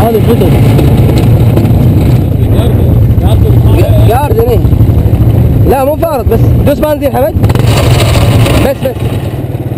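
A quad bike engine rumbles loudly up close.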